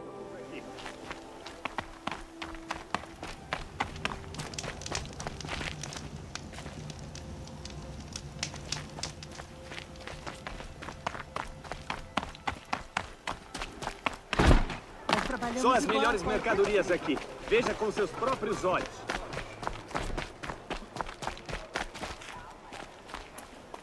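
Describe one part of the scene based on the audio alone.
Footsteps crunch quickly over snowy, rocky ground.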